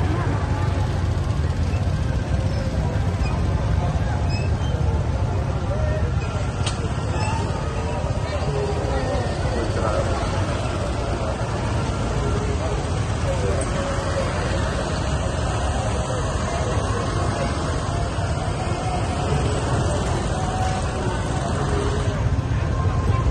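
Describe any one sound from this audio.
A crowd of men and women chatters on foot nearby.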